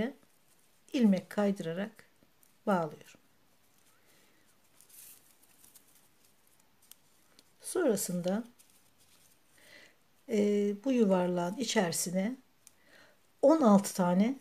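Dry raffia rustles softly as a crochet hook pulls it through loops.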